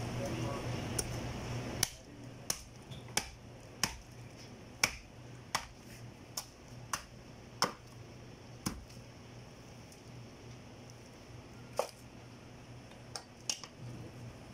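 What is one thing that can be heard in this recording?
A knife chops into meat and bone with sharp thuds.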